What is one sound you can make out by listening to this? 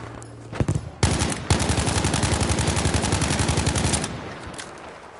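A submachine gun fires a long rapid burst close by.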